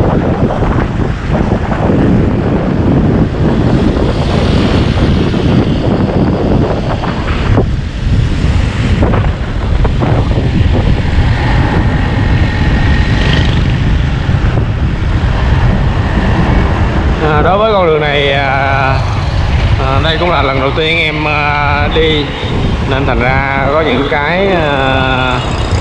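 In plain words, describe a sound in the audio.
Motorbike engines hum as they pass by on a road.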